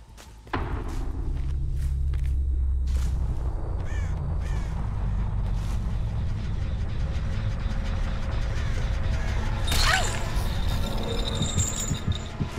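Dry corn stalks rustle as someone pushes through them.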